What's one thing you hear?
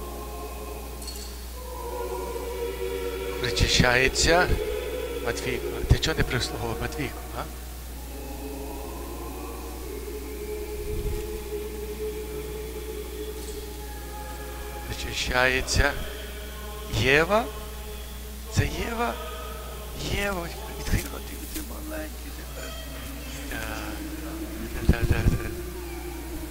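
A man chants a prayer in a large echoing hall.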